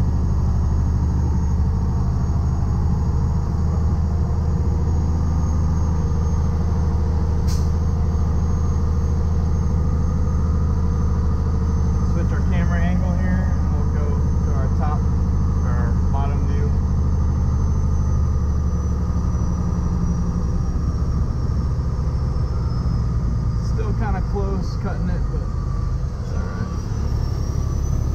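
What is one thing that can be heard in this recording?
A heavy truck engine rumbles steadily from inside the cab.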